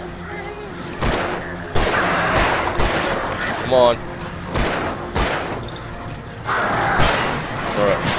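Gunshots bang sharply several times.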